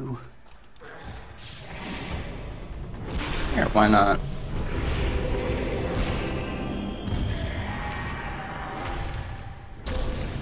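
Magic spells crackle and boom during a battle.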